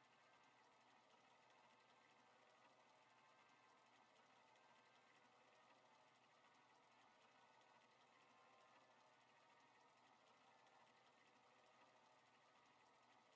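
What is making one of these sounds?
A mechanical drum spins with a soft steady whir.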